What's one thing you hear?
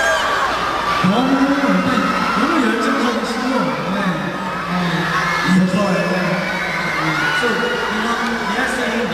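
A young man speaks animatedly through a microphone over loudspeakers in a large echoing hall.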